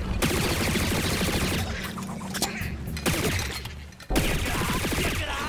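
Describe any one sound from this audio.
A blaster fires rapid zapping shots.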